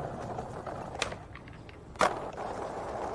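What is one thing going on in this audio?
A skateboard clacks as it lands.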